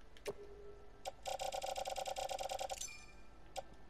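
A rapid electronic ticking plays.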